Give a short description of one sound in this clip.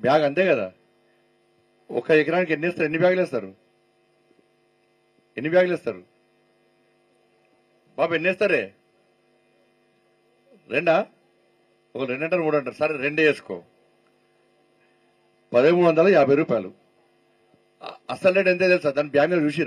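A middle-aged man speaks emphatically into a microphone over a loudspeaker, in bursts with pauses.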